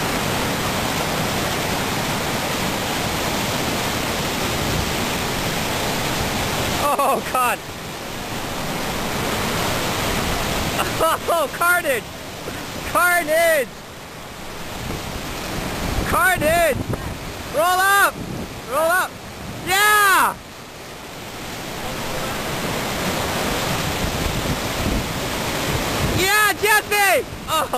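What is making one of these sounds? Whitewater rapids roar and churn loudly outdoors.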